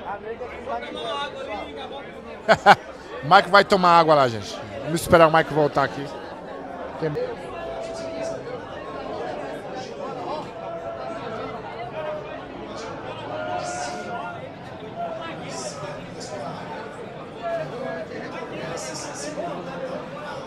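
A crowd of men chatters in a room.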